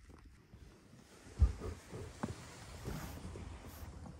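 A padded window cover rustles and thumps as it is pushed aside.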